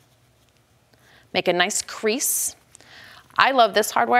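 Fabric rustles softly as it is folded by hand.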